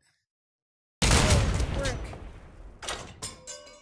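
A heavy gun fires with a loud boom that rolls away.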